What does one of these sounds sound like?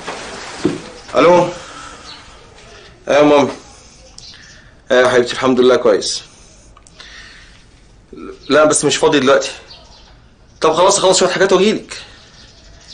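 A man talks anxiously on a phone, close by.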